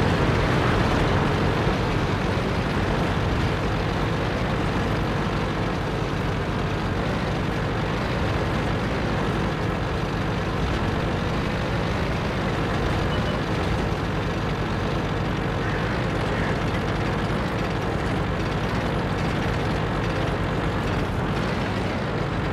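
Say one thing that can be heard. A tank engine rumbles steadily as the tank drives along.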